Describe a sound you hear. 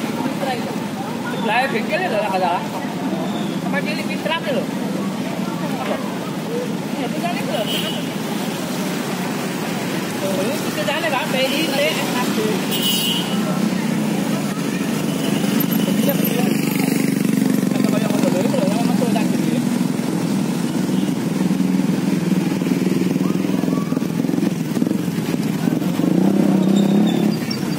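Men and women talk excitedly nearby outdoors.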